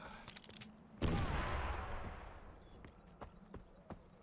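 A grenade explodes with a heavy rumble.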